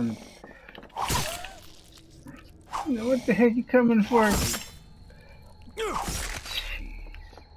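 A machete slices into flesh with wet thuds.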